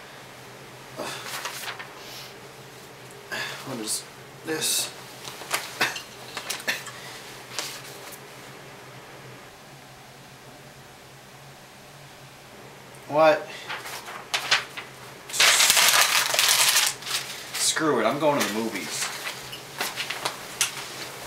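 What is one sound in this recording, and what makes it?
Sheets of paper rustle and crinkle close by.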